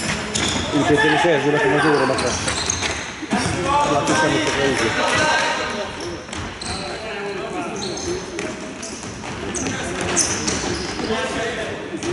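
A ball thuds as it is kicked.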